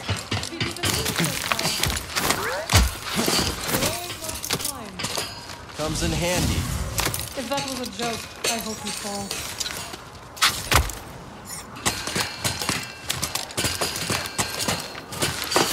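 Hands and boots clatter while climbing a metal mesh.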